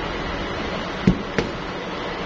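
A phone panel knocks lightly against a table.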